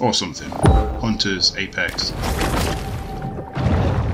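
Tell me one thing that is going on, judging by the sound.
Water splashes as a large creature dives beneath the surface.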